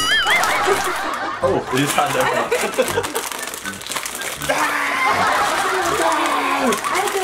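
A plastic snack bag crinkles and rustles.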